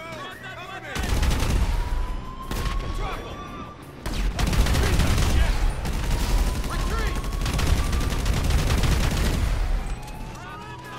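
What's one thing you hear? A rifle fires rapid bursts of loud gunshots.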